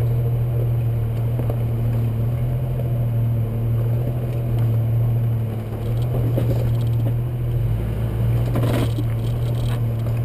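A vehicle engine drones low and steady.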